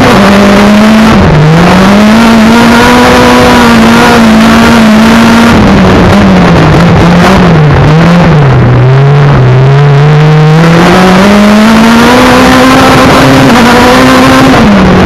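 A race car engine roars loudly up close, its pitch rising and falling as it accelerates and slows.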